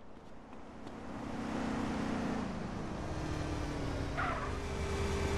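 A car drives past with a low engine hum.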